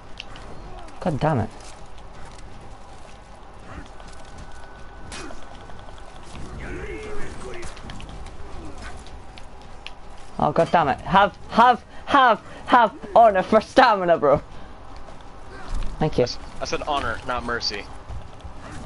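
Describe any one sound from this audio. Warriors grunt and shout as they fight.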